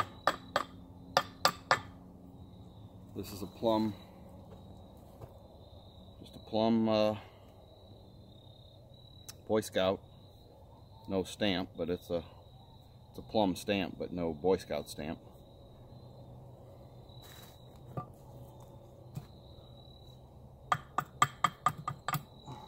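A hatchet chops into wood with sharp, quick knocks.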